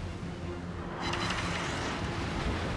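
A shell splashes into the sea nearby.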